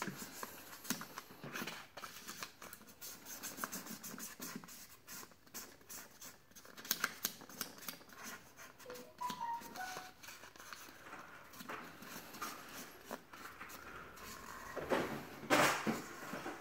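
Markers click and tap against a table.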